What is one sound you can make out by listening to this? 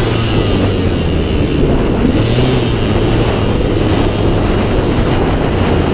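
Wind buffets loudly against the rider.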